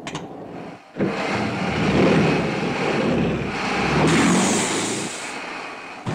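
Tyres roll and crunch over dry straw.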